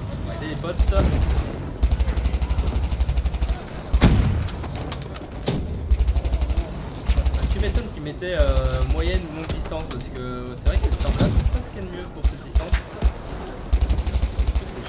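An automatic rifle fires rapid bursts close by.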